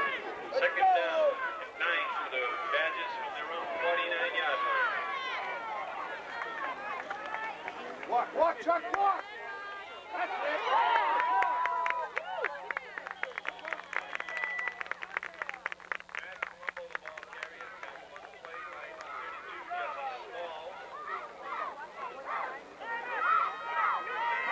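Men call out loudly outdoors.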